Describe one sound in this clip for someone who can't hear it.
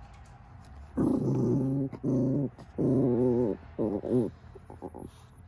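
A small dog growls close by in short bursts.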